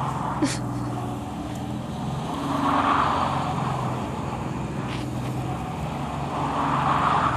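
Tyres hiss and crunch over snow.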